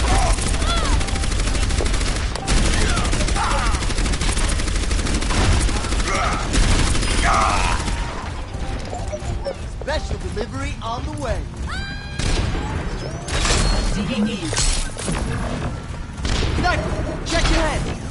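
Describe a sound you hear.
A game weapon fires bursts of shots.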